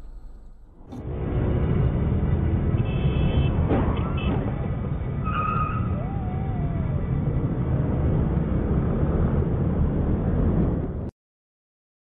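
Scooter engines idle and rev close by.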